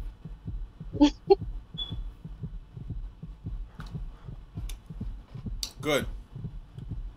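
A young man makes brief sounds with his voice close to a microphone.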